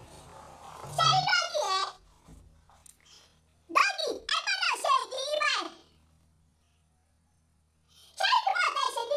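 A woman sings loudly and with animation close by.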